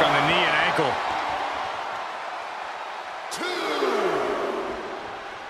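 A crowd cheers and roars loudly throughout.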